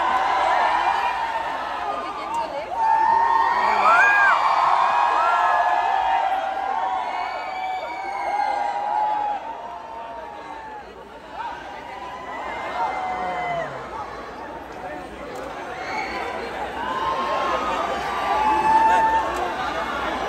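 A young man sings through a microphone over loudspeakers.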